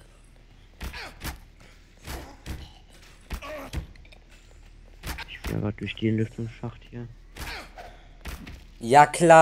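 A crowbar strikes flesh with heavy, wet thuds, again and again.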